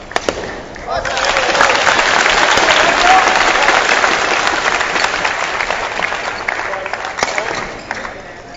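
A crowd applauds and cheers in a large indoor arena.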